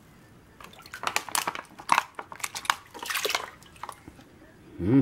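Water splashes as it is poured into a pan.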